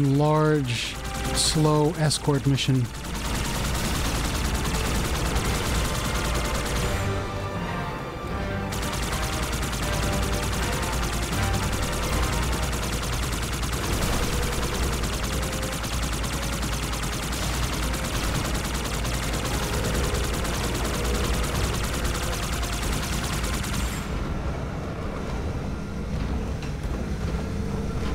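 A hovering vehicle's engine hums steadily as it flies along.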